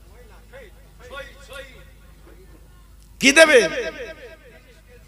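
An elderly man speaks through a microphone, with loud, animated bursts and an echo.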